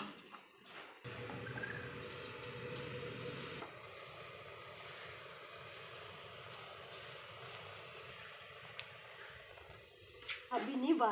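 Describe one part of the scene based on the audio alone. Milk simmers and hisses steadily in a pot on a gas flame.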